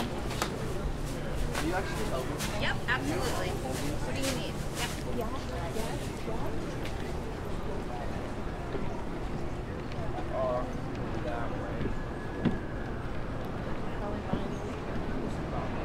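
Men and women chat at a distance outdoors.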